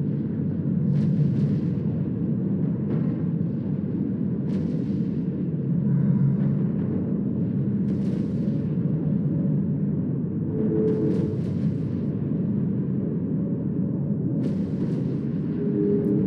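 Laser weapons fire in repeated sharp bursts.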